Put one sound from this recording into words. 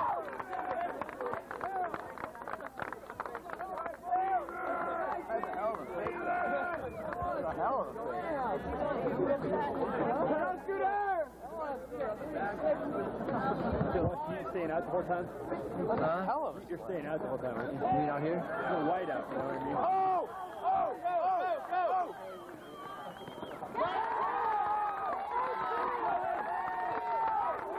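A crowd of young spectators chatters and cheers outdoors.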